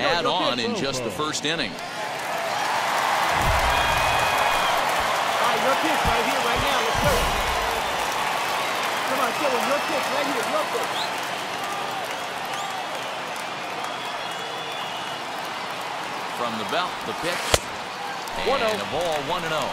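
A stadium crowd murmurs and cheers in a large open space.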